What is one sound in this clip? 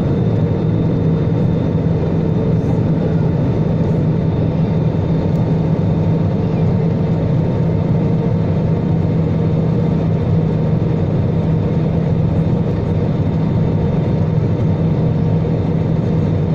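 Jet engines roar with a steady, deep hum.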